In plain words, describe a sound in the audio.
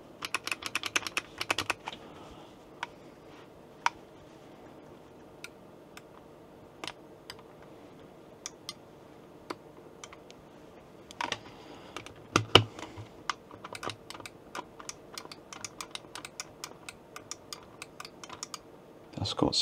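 A joystick rattles and knocks as it is pushed around.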